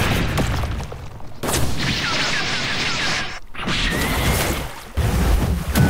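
Sword slashes and magic blasts whoosh and crash in a fight.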